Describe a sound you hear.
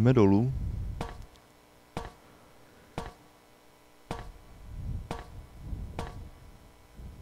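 Footsteps clank on metal ladder rungs.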